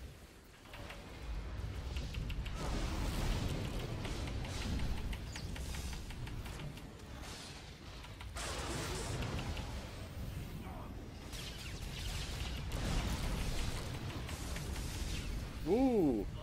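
Electric crackles and magical blasts sound in a fight.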